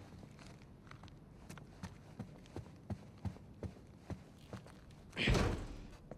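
Footsteps thud on a wooden floor at an even pace.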